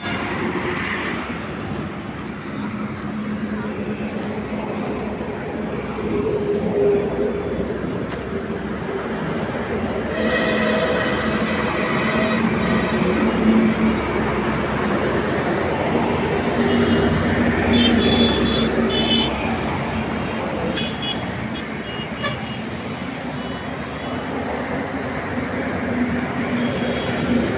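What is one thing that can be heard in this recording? Traffic rumbles steadily along a road nearby.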